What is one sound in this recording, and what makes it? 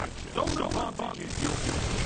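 An explosion bursts with a loud whoosh.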